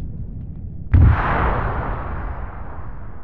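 A second explosion booms in the distance.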